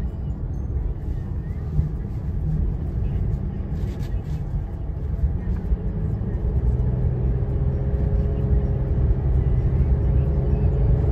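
Tyres roll on the highway with a low, constant road noise.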